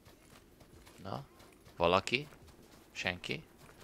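A young man speaks into a microphone close up, in short bursts.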